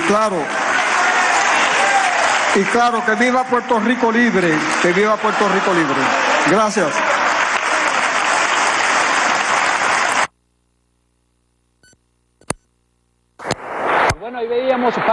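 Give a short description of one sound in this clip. A crowd chants together loudly.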